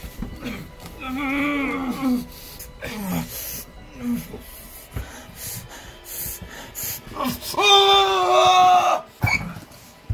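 A young man screams and cries out loudly, close by.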